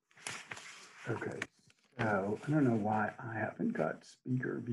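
An elderly man speaks calmly, heard through an online call.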